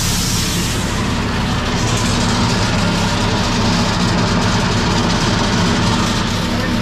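An engine runs loudly and steadily nearby.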